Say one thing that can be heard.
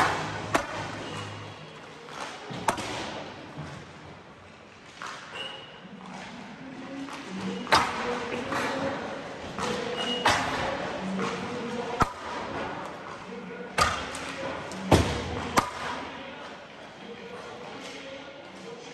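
Skates scrape and swish across the ice.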